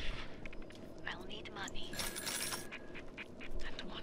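Coins jingle as they are picked up.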